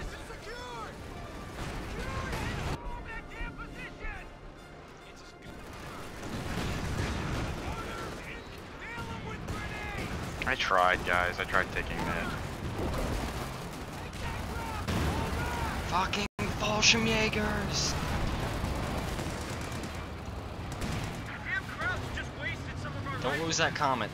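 Explosions rumble and boom in a battle.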